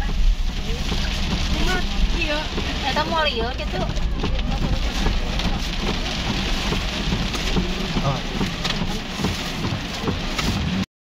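Rain patters on the windshield.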